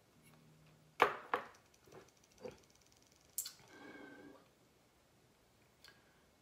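A young woman sips a drink and swallows close by.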